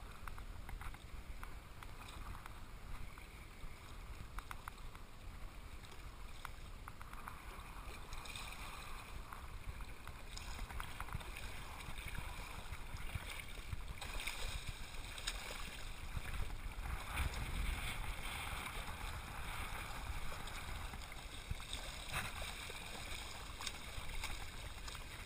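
Water splashes and gurgles as a swimmer kicks through shallow water.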